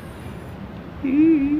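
A young man laughs briefly close by.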